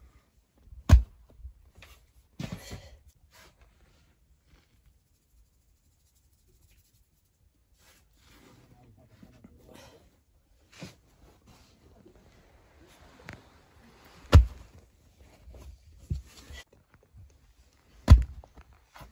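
Dough slaps against the inside of a clay oven with dull thuds.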